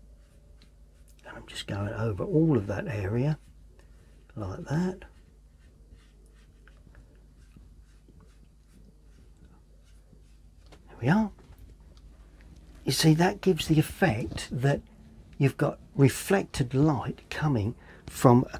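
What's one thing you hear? A paintbrush softly dabs and strokes on paper.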